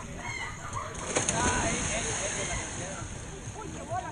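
Water splashes as someone jumps into a pool.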